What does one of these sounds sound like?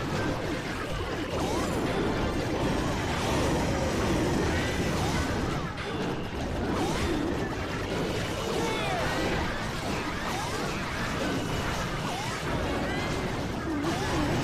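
Game explosions and zaps crackle in a busy battle.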